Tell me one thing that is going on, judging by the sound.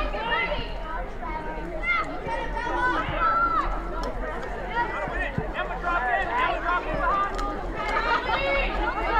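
Young women players call out to each other across the field.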